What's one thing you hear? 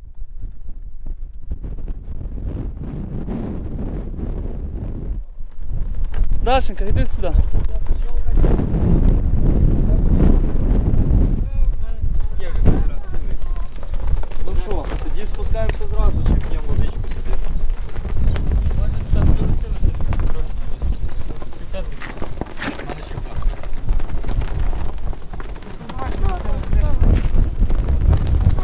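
Wind buffets the microphone in strong gusts outdoors.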